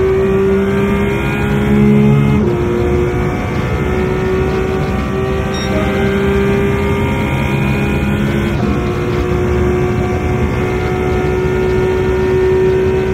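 Tyres hum and rush over the track.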